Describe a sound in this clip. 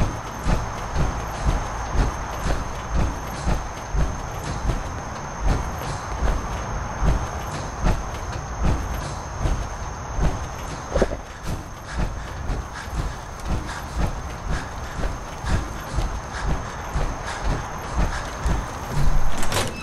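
Heavy armoured footsteps thud steadily over the ground.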